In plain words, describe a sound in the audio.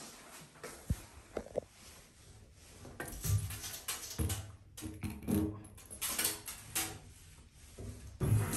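A metal plug chain rattles and clinks against a tub.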